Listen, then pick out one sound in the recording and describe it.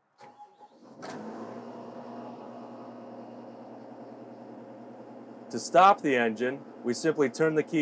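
A diesel engine starts and idles with a steady low rumble.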